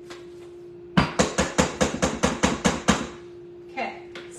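A spatula scrapes and taps against a metal mixing bowl.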